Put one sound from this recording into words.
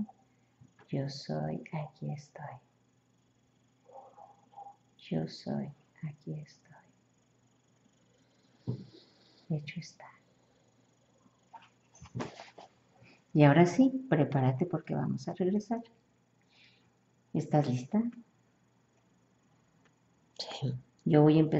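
A young woman talks softly up close, in short bursts with pauses.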